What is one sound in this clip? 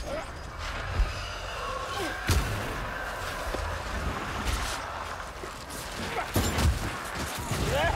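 Weapons strike with heavy thuds and clangs.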